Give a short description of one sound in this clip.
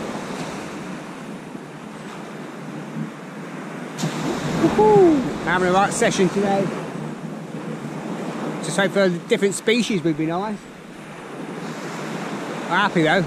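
Small waves break on a sandy shore.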